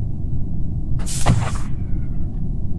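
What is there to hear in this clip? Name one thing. A whooshing sound sweeps past.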